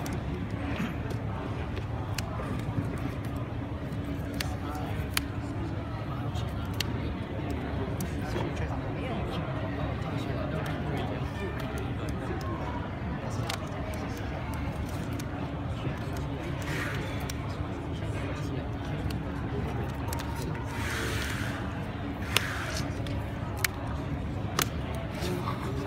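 Playing cards tap and slide on a table mat.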